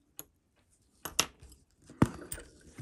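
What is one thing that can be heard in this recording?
Small metal parts click as a watch movement is handled.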